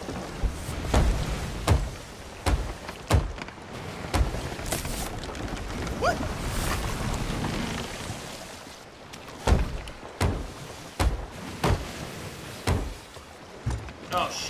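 Hammer blows knock on wood in quick bursts.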